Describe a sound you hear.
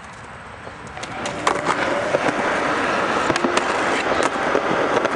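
Skateboard wheels roll loudly over rough concrete.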